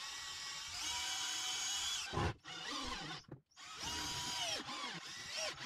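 A cordless drill whirs in short bursts, speeding up and slowing down.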